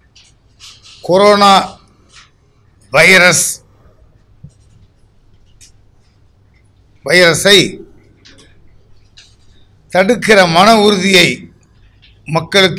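An elderly man speaks forcefully in short bursts into microphones, with pauses between phrases.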